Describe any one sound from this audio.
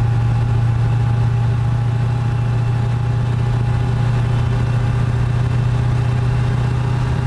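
A truck engine hums steadily at a low drone.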